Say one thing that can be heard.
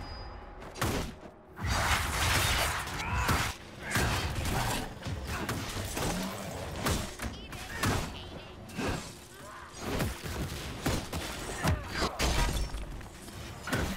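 A large creature roars and snarls.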